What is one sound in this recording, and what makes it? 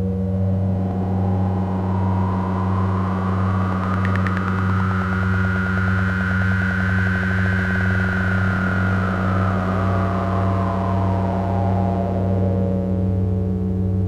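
A synthesizer tone slowly rises and falls in pitch.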